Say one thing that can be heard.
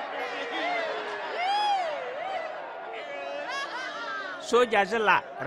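An elderly woman wails and sobs.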